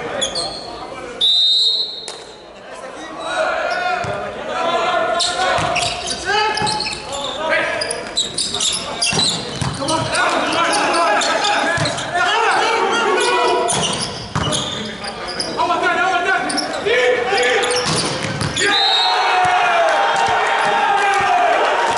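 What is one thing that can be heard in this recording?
A volleyball is struck hard, again and again, echoing in a large hall.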